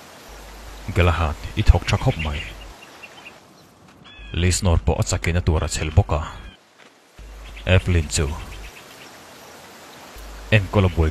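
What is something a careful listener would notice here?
Another man speaks quietly and earnestly.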